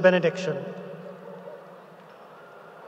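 A man speaks briefly through a microphone in a large echoing hall.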